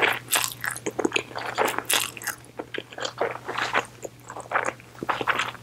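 A woman chews with soft, wet smacking sounds, close to a microphone.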